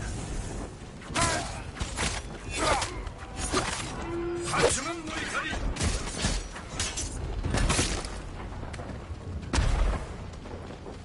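Swords clash and clang in quick blows.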